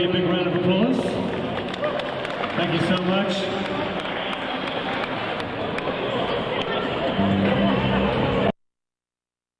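A live band plays music in a large echoing hall.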